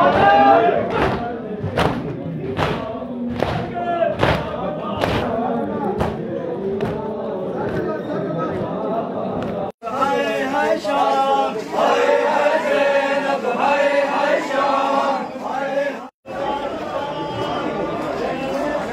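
A crowd of men chants loudly together.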